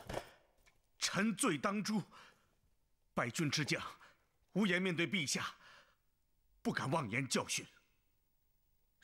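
A man answers in a low, humble voice.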